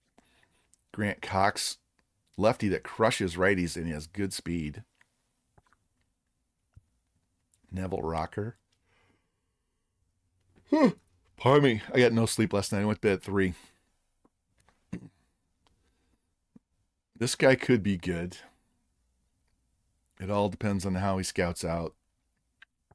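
A middle-aged man talks calmly into a close microphone, in short bursts with pauses.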